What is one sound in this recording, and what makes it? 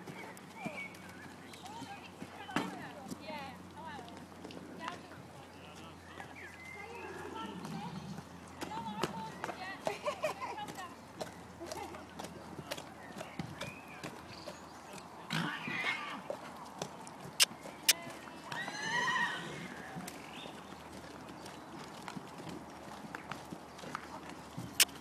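A horse's hooves thud softly on a soft arena surface.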